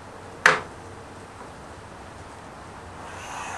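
A pencil scratches on wood.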